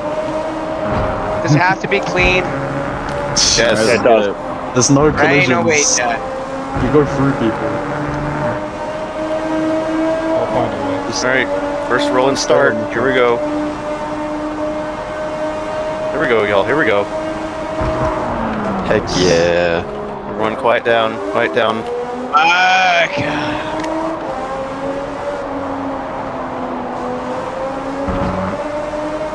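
A racing car engine whines at high revs, rising and falling with gear changes.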